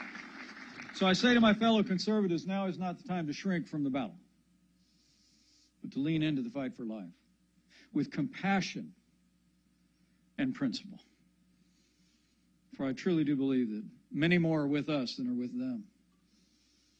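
A man speaks firmly into a microphone, in pauses.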